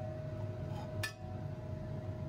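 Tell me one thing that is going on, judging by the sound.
A glass beaker clinks as it is picked up.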